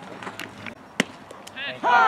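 A bat cracks sharply against a ball.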